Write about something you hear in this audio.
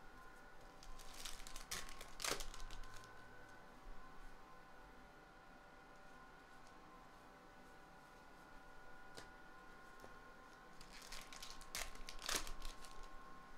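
A foil wrapper crinkles as hands handle a card pack.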